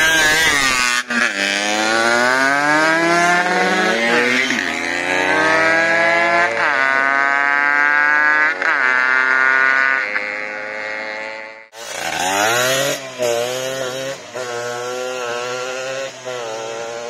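A motorcycle engine revs loudly, rising and falling in pitch as it rides away.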